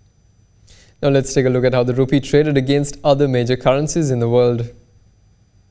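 A young man speaks calmly and clearly into a microphone.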